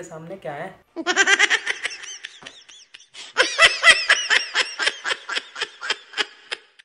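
A young woman laughs in short bursts close by.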